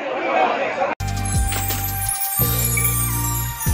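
A musical jingle plays.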